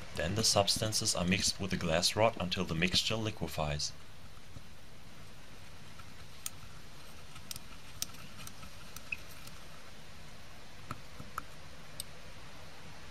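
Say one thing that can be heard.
A glass rod clinks and scrapes against a glass beaker while stirring.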